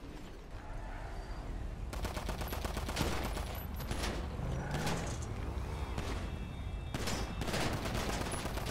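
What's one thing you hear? A motorcycle engine whines as it speeds along.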